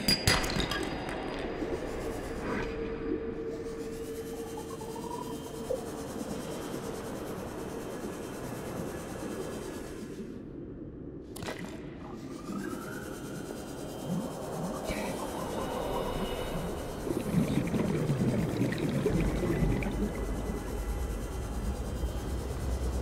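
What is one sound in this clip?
An underwater scooter's motor hums and whirs steadily.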